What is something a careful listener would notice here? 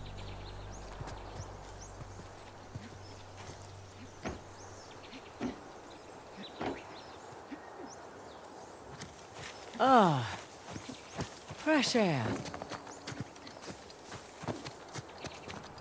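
Footsteps tread on grass and stone.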